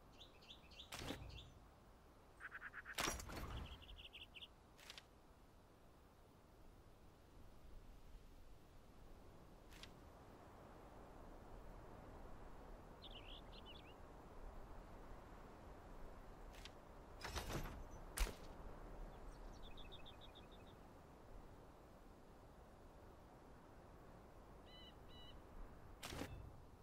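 Soft menu clicks sound now and then.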